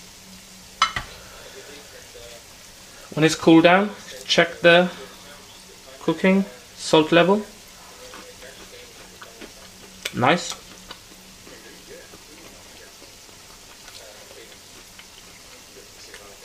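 Oil sizzles and bubbles softly in a frying pan.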